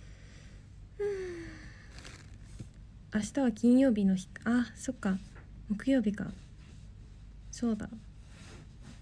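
A young woman speaks softly and quietly close to a microphone.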